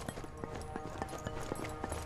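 Footsteps clatter quickly up metal stairs.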